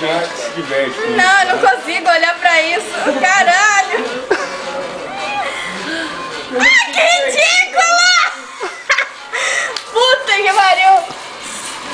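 A young woman giggles in high, squealing bursts.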